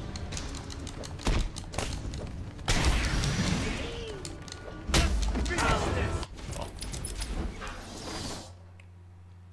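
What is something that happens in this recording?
Punches and kicks land with heavy thuds in a brawl.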